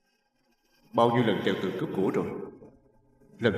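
A young man speaks in a low, tense voice close by.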